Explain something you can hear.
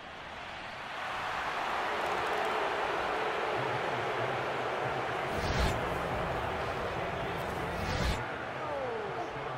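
A large crowd roars and cheers loudly in a big stadium.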